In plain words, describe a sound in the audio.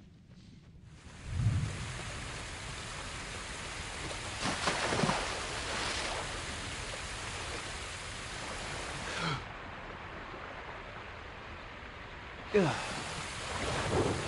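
Rain pours steadily onto water.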